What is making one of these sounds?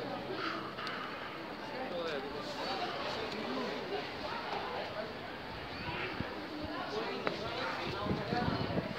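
A crowd of people chatter in the distance outdoors.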